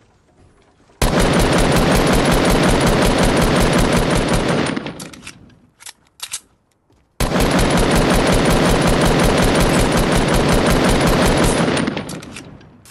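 Rapid gunfire rattles loudly in quick bursts.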